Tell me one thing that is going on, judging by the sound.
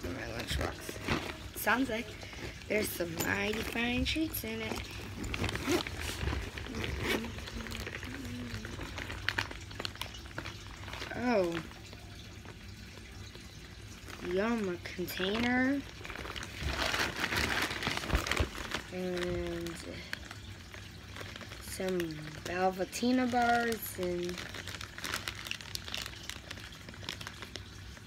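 Fabric and plastic rustle as a bag is handled.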